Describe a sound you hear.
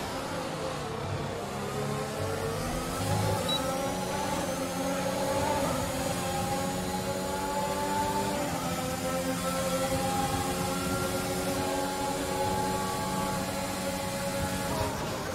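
A racing car engine screams at high revs, rising in pitch and dropping with each gear change.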